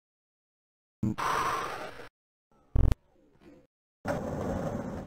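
A heavy mechanical door slides open with a whooshing hiss.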